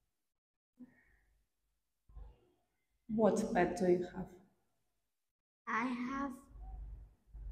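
A young girl answers softly.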